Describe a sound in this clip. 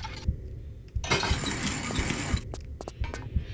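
A heavy metal door slides open with a loud rush.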